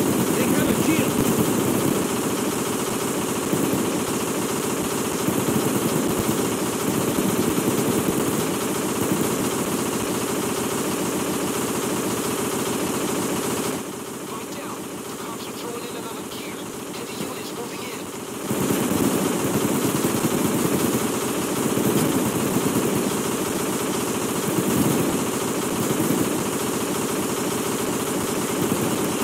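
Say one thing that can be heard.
A heavy drill grinds steadily into metal.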